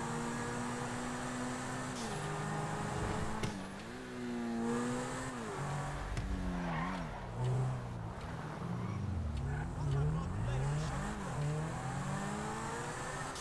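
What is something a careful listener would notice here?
A sports car engine revs loudly, rising and falling as the gears shift.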